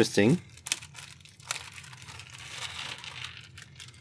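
Small plastic parts clatter as they are poured out.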